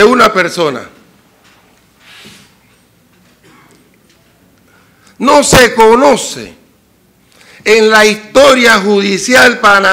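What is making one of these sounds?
A middle-aged man speaks with emphasis into a microphone, pausing between phrases.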